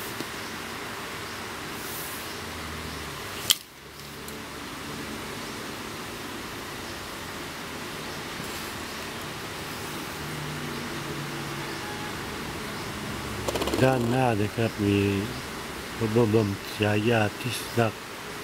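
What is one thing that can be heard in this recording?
Fingers handle a coin with faint rubbing and tapping.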